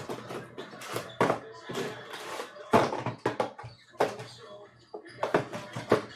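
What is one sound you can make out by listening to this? Cardboard boxes knock and slide against each other as hands handle them.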